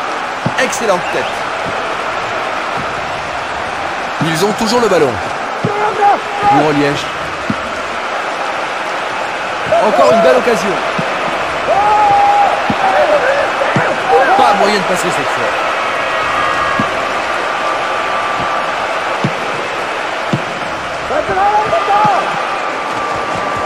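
A stadium crowd roars steadily in the background.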